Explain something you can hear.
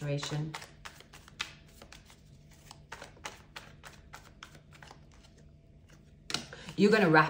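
Playing cards riffle and slap together as they are shuffled by hand.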